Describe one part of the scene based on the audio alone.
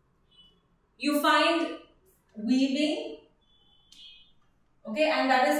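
A young woman speaks clearly into a microphone, like a teacher explaining.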